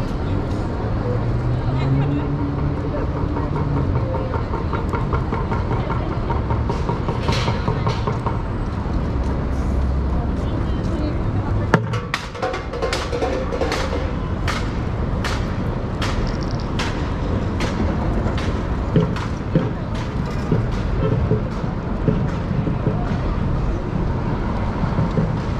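A bustling crowd murmurs outdoors on a busy city street.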